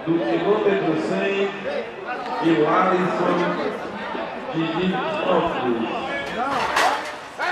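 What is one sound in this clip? A man talks quickly and with animation over a microphone.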